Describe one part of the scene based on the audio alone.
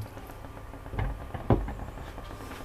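A pot lid clanks against a pot.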